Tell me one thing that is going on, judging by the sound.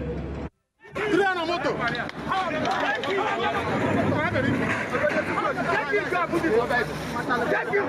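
A crowd of men shout and argue excitedly nearby.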